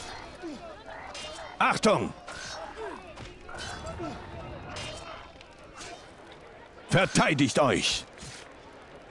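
Weapons clash and strike in a short fight.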